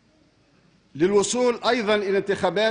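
An older man speaks loudly and formally into a microphone.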